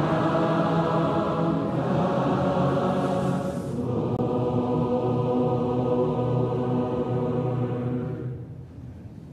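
A large crowd sings a hymn together in a large echoing hall.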